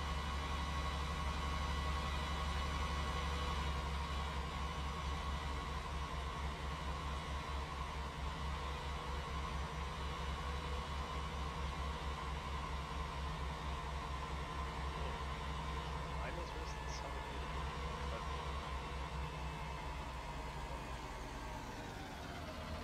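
A tractor engine drones steadily as the tractor drives along.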